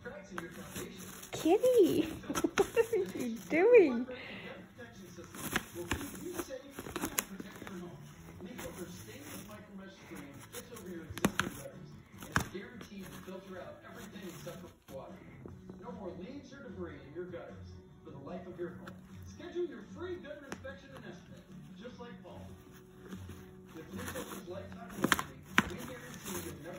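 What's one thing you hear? Tissue paper rustles and crinkles as a cat pulls it from a box.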